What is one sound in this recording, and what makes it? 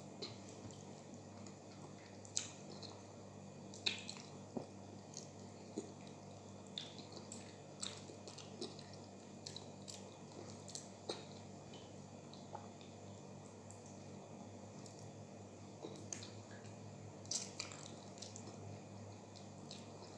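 A woman eats, with loud wet chewing and smacking sounds.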